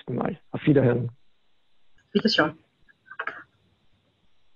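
A middle-aged man speaks calmly in short bursts through an online call.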